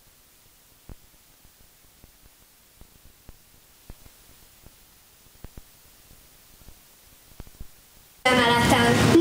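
Footsteps tap softly on a wooden stage floor.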